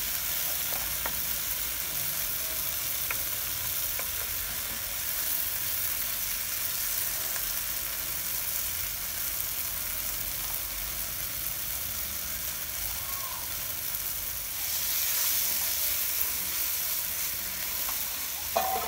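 Food sizzles and hisses steadily in a hot frying pan.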